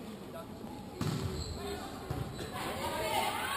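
A volleyball is struck hard during a rally.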